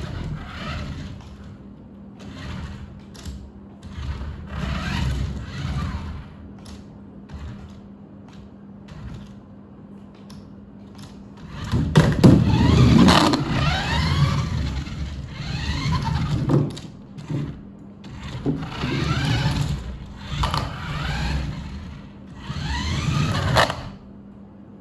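A toy car's electric motor whines and revs up and down.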